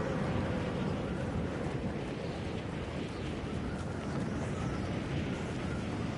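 Wind rushes steadily past a gliding game character.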